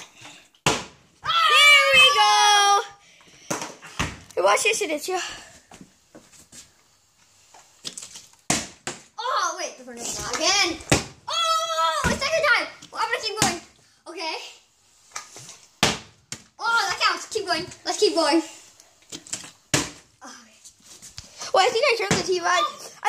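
A plastic bottle thuds onto a hard floor.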